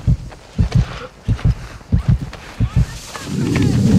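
Explosions boom and debris rattles nearby.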